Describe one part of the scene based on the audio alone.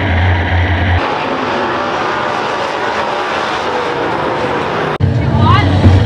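Race car engines roar far off across an open track.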